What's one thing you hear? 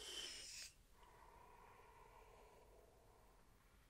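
A man exhales a long breath.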